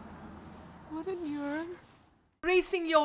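A woman speaks tearfully, close by.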